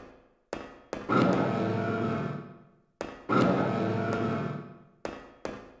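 A heavy metal door slides open with a hiss.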